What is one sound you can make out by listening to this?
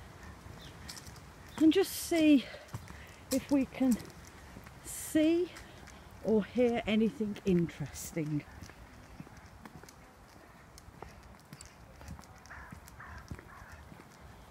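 A dog's paws patter softly on a paved path.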